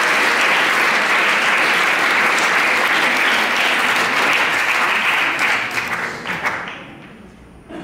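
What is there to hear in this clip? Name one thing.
An audience applauds loudly in a room, then the clapping dies away.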